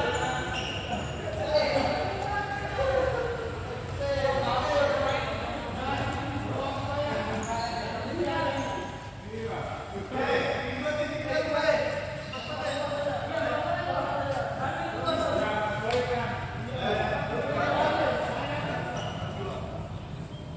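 Children shout and call out to each other in a large echoing hall.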